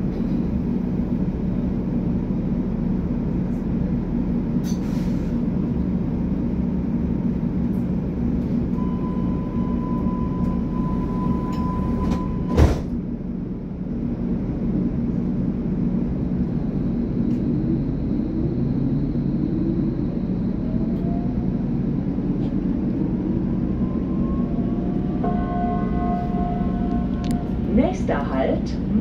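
A train hums steadily, heard from inside a carriage.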